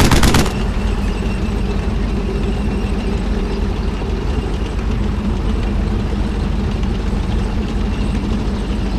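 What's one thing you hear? A tank engine rumbles steadily as the tank drives.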